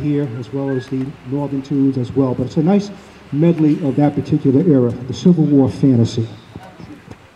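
A man speaks with animation through a loudspeaker outdoors.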